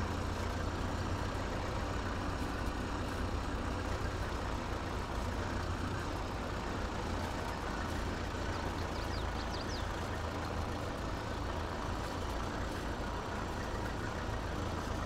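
A hay rake rattles as it turns over grass.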